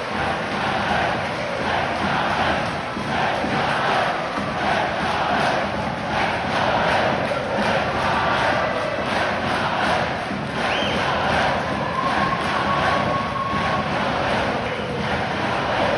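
A crowd claps in rhythm.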